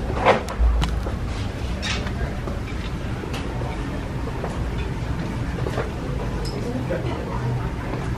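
A hand softly taps and shifts shoes.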